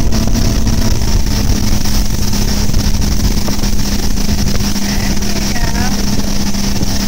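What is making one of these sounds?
Water churns and splashes behind a boat.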